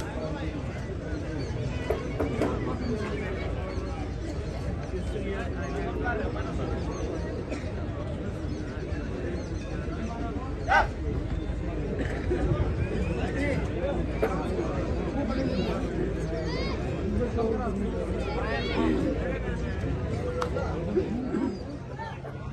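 A large crowd outdoors murmurs and chatters in the distance.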